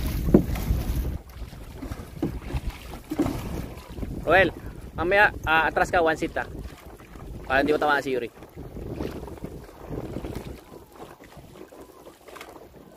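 Dragon boat paddles splash into the water.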